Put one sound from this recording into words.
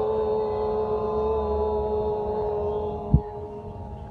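A middle-aged woman hums a long, steady note close by.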